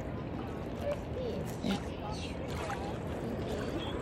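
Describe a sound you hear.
Water laps gently at a pebbly shore.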